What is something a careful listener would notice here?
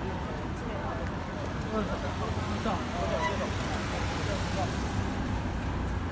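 A van drives past.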